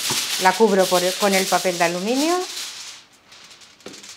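Aluminium foil crinkles as it is handled.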